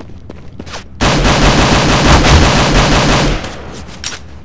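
A pistol fires several shots in quick succession.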